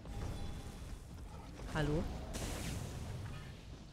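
Heavy blows land in a fight with a creature.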